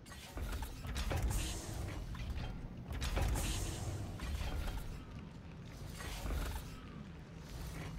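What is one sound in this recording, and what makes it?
Heavy boots thud on a metal floor.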